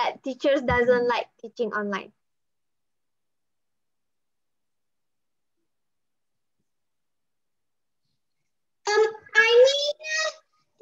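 A young boy talks close by, pausing between phrases.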